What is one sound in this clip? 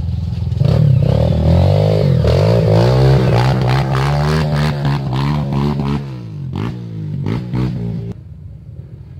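A dirt bike engine revs loudly as the bike climbs past close by.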